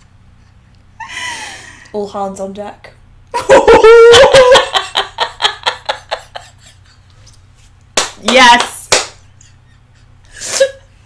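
Two women laugh loudly.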